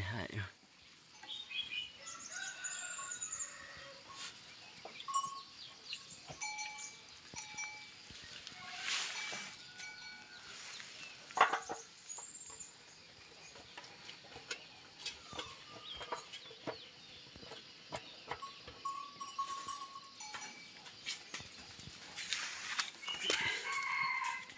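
Fingers tap and scrape on a metal engine casing.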